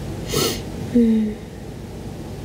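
A young woman gives a short, low murmur close by.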